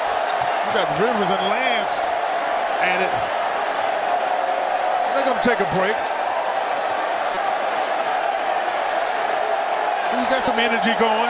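A large indoor crowd murmurs and shouts in an echoing arena.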